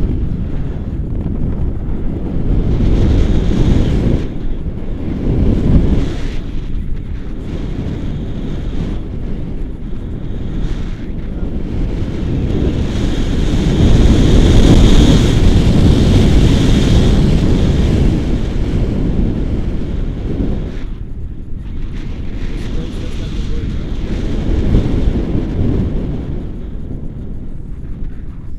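Strong wind rushes and buffets loudly past a nearby microphone.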